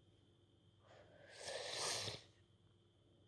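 A young boy breathes out in a loud puff.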